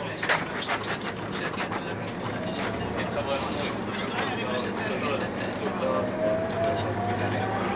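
The bus body rattles and creaks over the road.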